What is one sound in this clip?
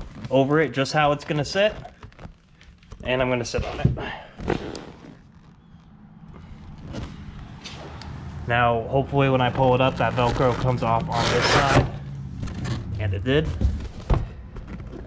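A hand presses and rubs a foam cushion.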